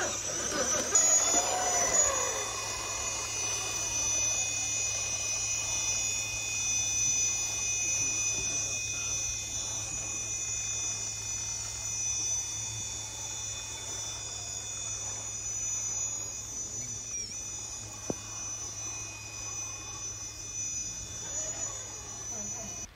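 A small electric motor whines steadily.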